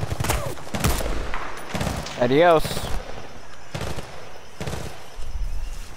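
A rifle fires sharp single shots in bursts.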